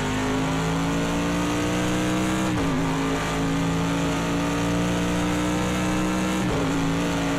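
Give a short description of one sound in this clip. A racing car engine roars at high revs, dropping briefly as it shifts gear twice.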